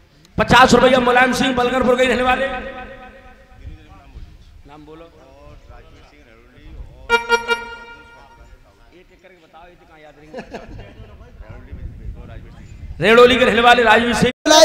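A woman sings loudly through a microphone and loudspeaker.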